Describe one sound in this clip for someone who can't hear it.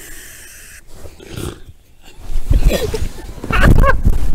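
Bedding rustles as people wrestle under blankets.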